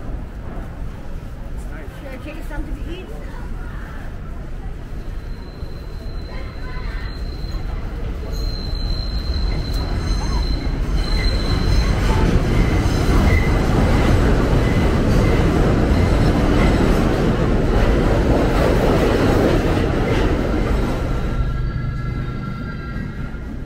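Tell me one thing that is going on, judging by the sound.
Footsteps shuffle on a pavement.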